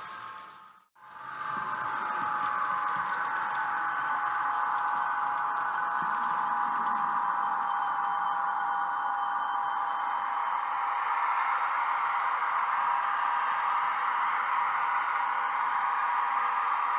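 A small electric train motor hums and whirs steadily as a model train rolls along the tracks.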